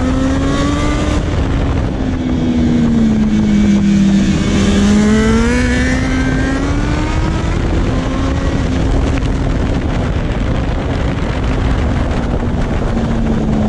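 A single-cylinder motorcycle engine revs hard as the bike accelerates through the gears.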